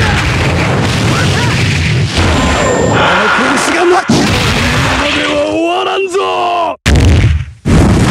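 Punches and kicks land with rapid, heavy thuds.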